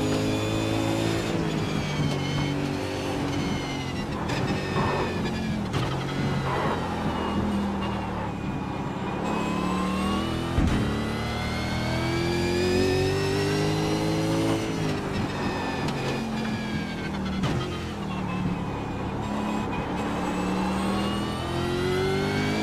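A racing car engine roars loudly, rising and falling in pitch as it shifts gears.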